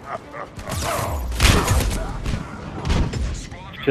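A grenade explodes with a loud burst.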